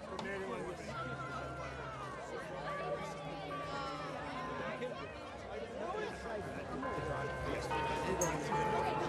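A marching band's brass instruments play sustained notes.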